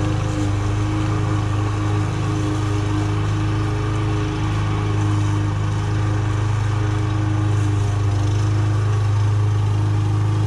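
A lawn mower engine drones steadily nearby.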